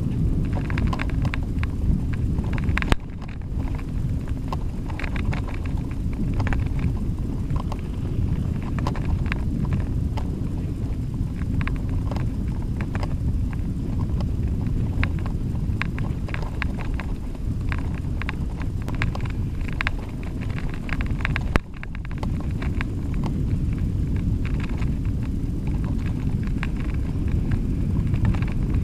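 Wind rumbles against a moving bicycle.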